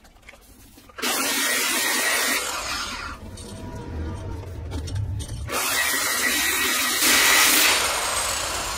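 An angle grinder whines loudly as it grinds metal.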